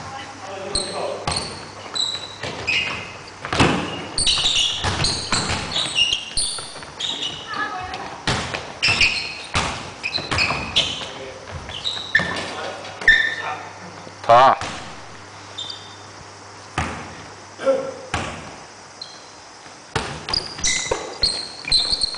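Sneakers squeak on a wooden gym floor.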